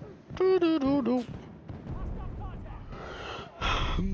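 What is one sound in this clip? A loud explosion booms nearby and rumbles.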